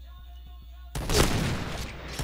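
A sniper rifle fires a single loud, booming shot.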